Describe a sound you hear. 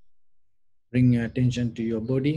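A man speaks calmly and slowly into a nearby microphone.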